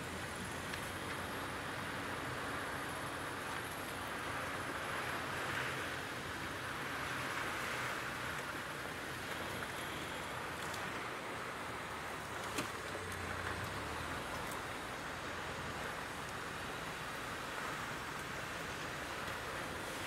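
An engine rumbles steadily as a vehicle drives along.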